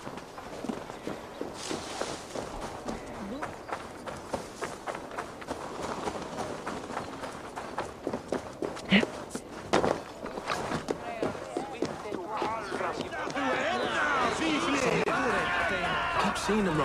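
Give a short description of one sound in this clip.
Footsteps crunch on the ground at a quick pace.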